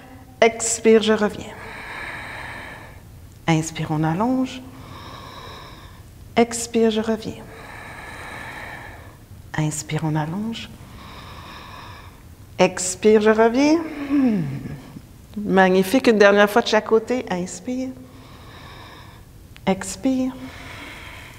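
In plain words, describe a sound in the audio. A woman speaks calmly and clearly into a close microphone, giving instructions in short phrases.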